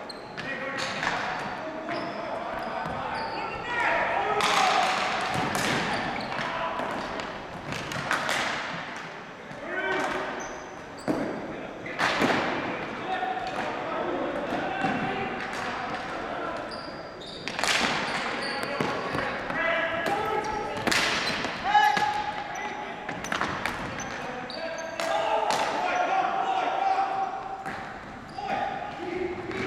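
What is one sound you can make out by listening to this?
Shoes squeak on the floor.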